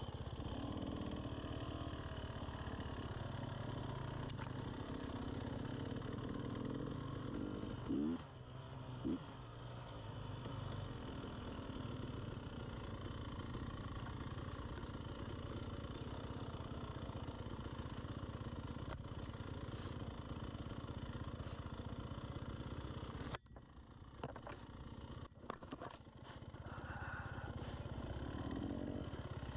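A two-stroke enduro dirt bike rides along a trail, its engine rising and falling with the throttle.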